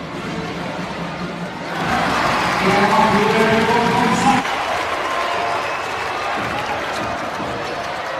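Basketball shoes squeak sharply on a wooden court.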